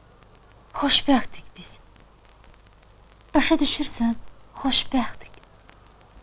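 A young woman speaks in short, emotional bursts close by.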